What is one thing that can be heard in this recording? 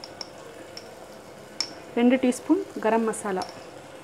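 Powder is tipped from a spoon into a metal pot.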